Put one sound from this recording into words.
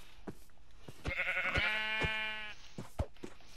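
A sheep bleats nearby.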